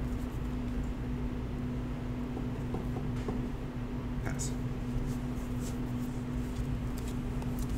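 Playing cards slide and tap softly on a cloth mat.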